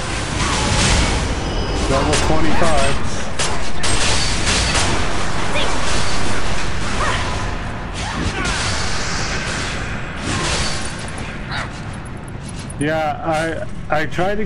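Sword strikes and magic blasts crash and whoosh in rapid bursts.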